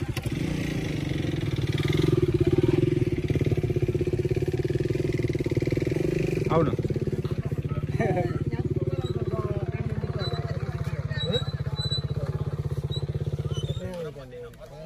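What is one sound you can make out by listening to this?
A motorcycle engine idles steadily nearby, then cuts off.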